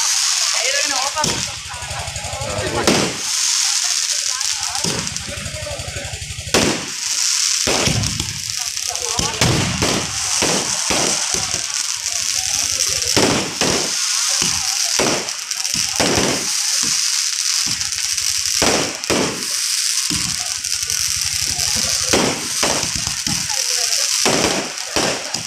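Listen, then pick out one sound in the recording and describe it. Fireworks crackle and sizzle steadily.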